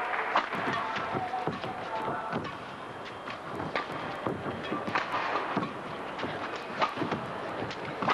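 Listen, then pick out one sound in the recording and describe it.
A racket strikes a shuttlecock with sharp pops.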